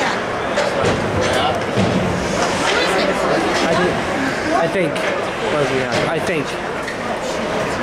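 Skate blades scrape and hiss across the ice in a large echoing rink.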